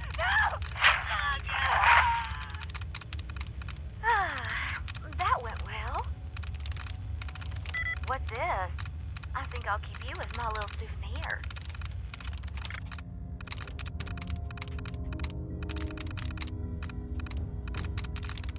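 Terminal keys click and tick in quick bursts.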